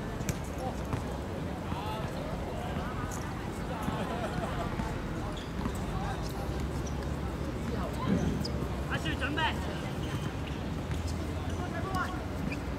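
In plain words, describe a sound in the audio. A ball is kicked with a dull thud.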